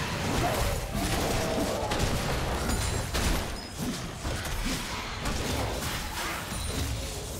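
Spell effects and attacks in a video game battle crackle and thud quickly one after another.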